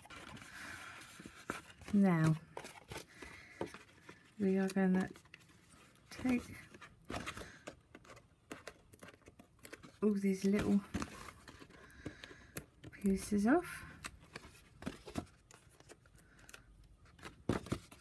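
Stiff card rustles and crinkles as it is handled and folded.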